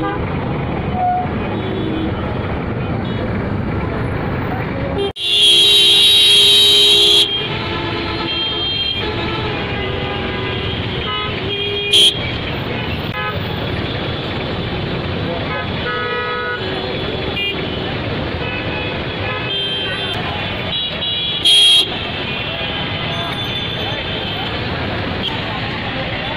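Traffic engines rumble steadily outdoors.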